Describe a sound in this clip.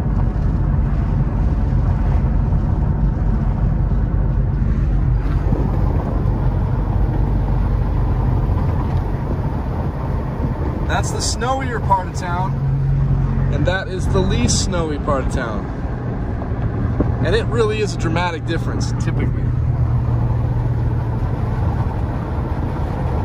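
A car's engine and tyres rumble steadily from inside the car as it drives.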